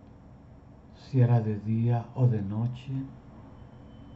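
A middle-aged man speaks calmly over an online call.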